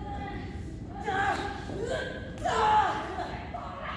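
A young woman shouts with effort.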